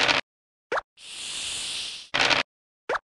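Dice rattle briefly as they roll.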